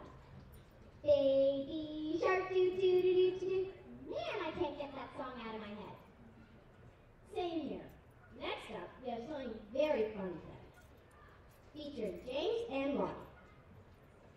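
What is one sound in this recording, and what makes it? A young girl speaks with animation through a microphone outdoors.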